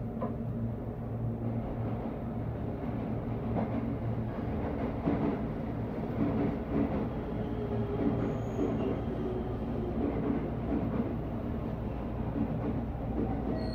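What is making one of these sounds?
Another train rolls past close by on the next track.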